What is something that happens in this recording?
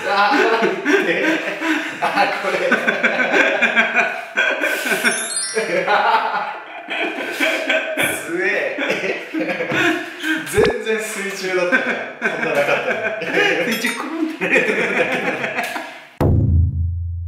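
A second young man talks and answers close by.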